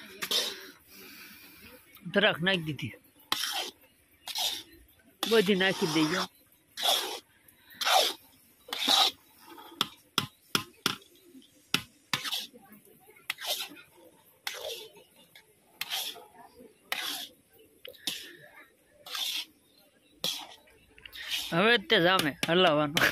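A metal spatula scrapes and stirs in a metal pan.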